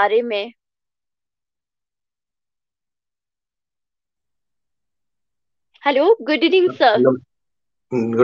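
A young woman speaks warmly over an online call.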